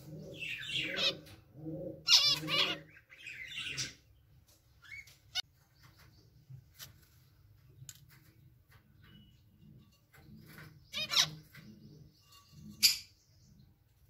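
Small finches chirp and call in short, quick bursts.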